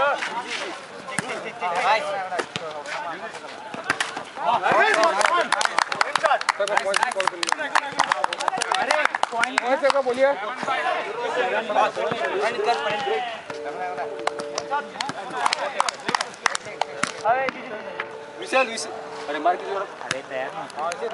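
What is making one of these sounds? A volleyball is struck with hands.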